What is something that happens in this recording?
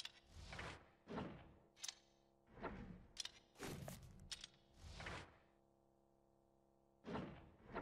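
A menu clicks as selections change.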